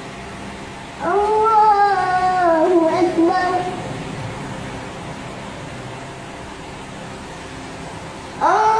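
A man chants a prayer aloud through a loudspeaker.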